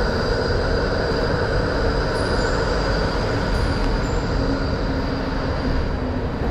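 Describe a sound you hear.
A tram hums as it rolls past close by.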